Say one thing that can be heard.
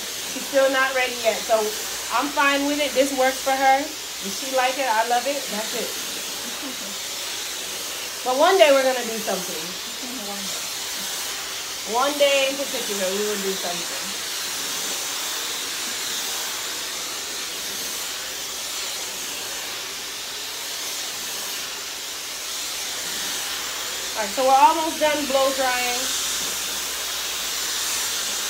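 A hair dryer blows with a steady whooshing hiss.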